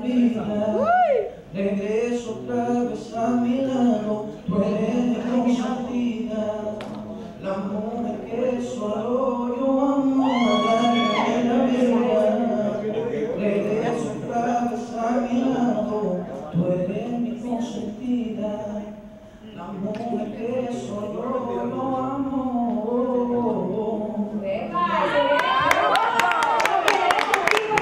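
A young woman talks brightly through a microphone.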